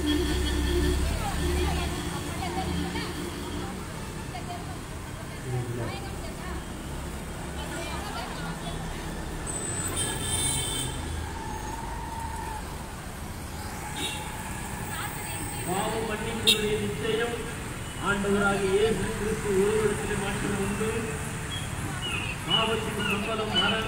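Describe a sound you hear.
Motorbike and auto-rickshaw engines buzz as they go by.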